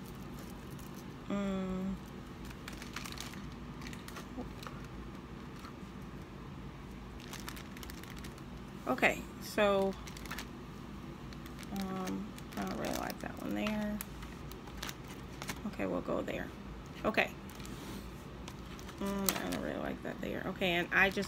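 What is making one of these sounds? Plastic wrapping crinkles as it is handled.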